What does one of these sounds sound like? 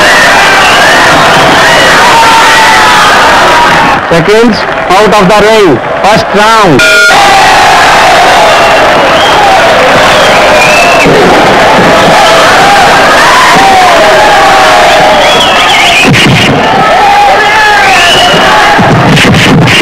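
A large crowd cheers and shouts in a big hall.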